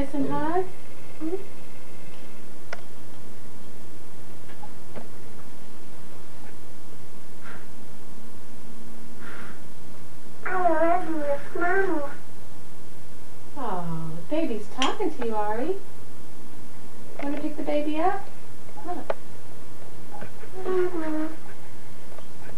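A woman speaks to a baby nearby in a high, sing-song voice.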